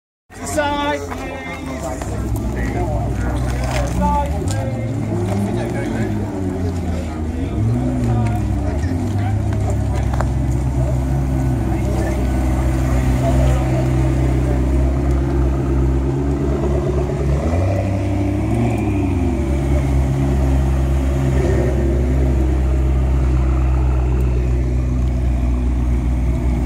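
Supercar engines idle with a deep, steady rumble and rev now and then.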